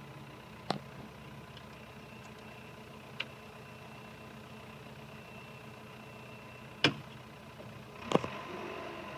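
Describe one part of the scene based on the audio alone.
A diesel engine idles steadily nearby.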